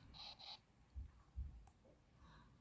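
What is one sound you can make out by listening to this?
A pen tip taps on a tablet's glass.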